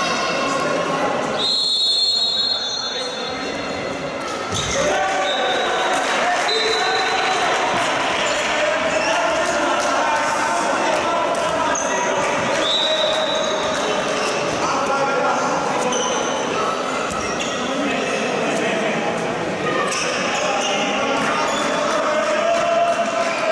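Young men shout across a large echoing hall.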